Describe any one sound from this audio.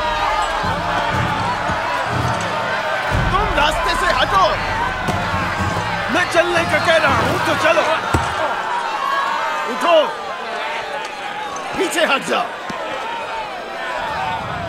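A crowd of men and women shouts and wails nearby.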